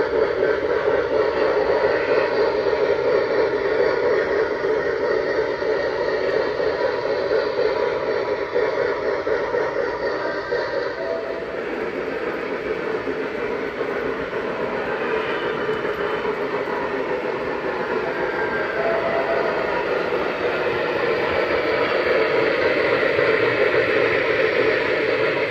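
Small model trains rumble and click steadily along metal tracks.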